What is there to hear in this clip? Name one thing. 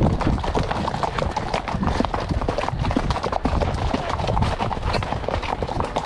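Horses' hooves thud and clop on a muddy track.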